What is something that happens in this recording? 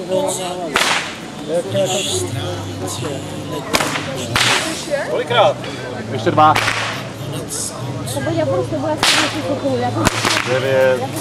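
A whip cracks sharply, several times, outdoors.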